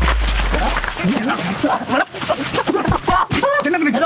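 Men shout angrily close by.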